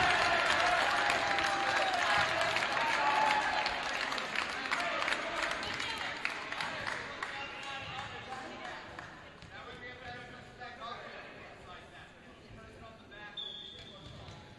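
Players' shoes squeak on a hard floor.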